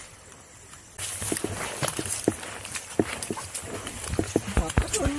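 Sandals slap and scuff on wet rock as people walk.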